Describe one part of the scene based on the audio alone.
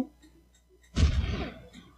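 A bomb explodes in a video game with a short rumbling burst.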